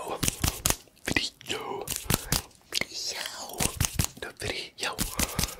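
Fingers snap and click close to a microphone.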